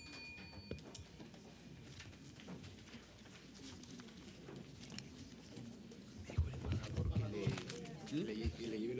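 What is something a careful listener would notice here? A crowd of men and women murmurs and chats in a large room.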